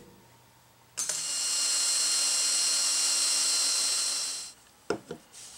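A power drill whirs as it bores into wood.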